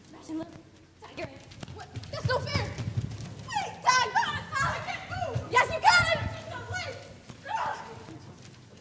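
A young girl speaks and shouts with animation from a stage, heard from the audience.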